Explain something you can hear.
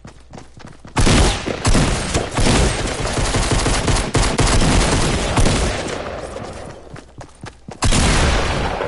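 A pickaxe strikes something hard again and again.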